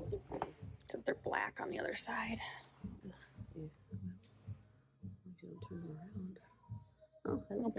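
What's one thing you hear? A cushion rustles as a hand lifts and moves it.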